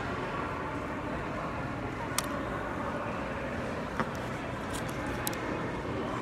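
An older woman chews food.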